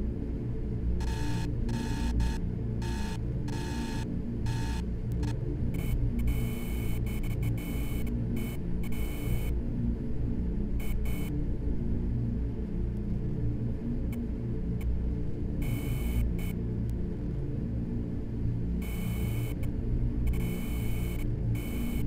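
Electronic machines beep and chirp in short bursts.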